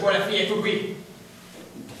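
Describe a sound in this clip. A young man speaks loudly in a large room.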